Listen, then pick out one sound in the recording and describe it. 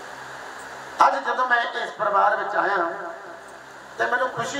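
A man sings into a microphone through a loudspeaker.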